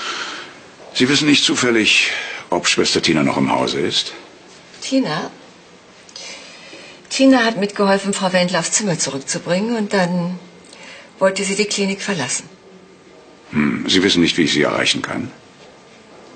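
A middle-aged man speaks calmly and clearly nearby.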